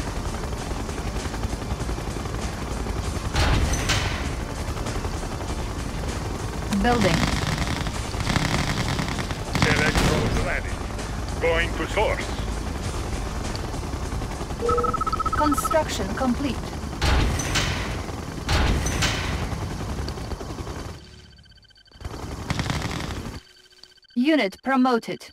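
Game sound effects of gunfire and blasts thud through steady rumbling noise.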